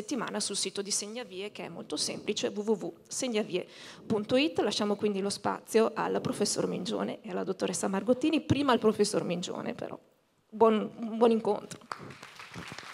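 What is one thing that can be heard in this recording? A young woman speaks into a microphone over loudspeakers in a large echoing hall.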